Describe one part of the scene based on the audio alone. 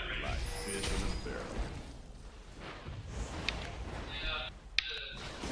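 Video game spells zap and crackle in a fast battle.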